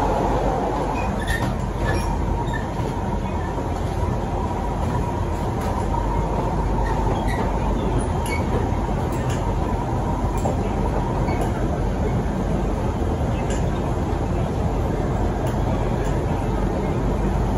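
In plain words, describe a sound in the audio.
Wheels squeal and click on the rails.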